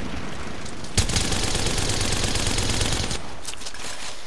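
A rifle fires in a rapid, sustained burst.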